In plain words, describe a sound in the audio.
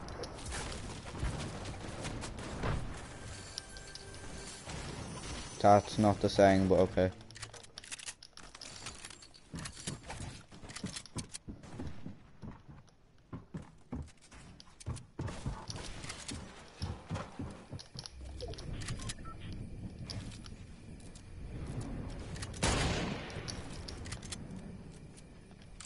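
Footsteps patter quickly in a video game.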